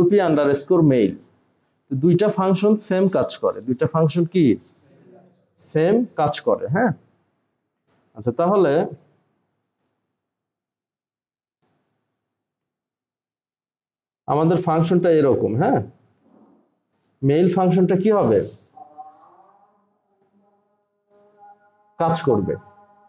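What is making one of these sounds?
A man talks calmly and explains, close to a microphone.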